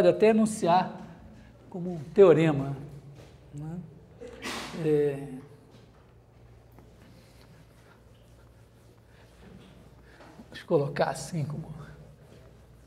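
A middle-aged man speaks with animation in a room, close by.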